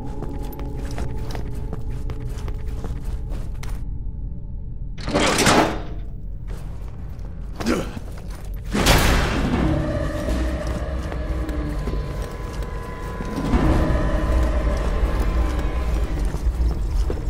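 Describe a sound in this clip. Heavy boots run quickly on a hard floor.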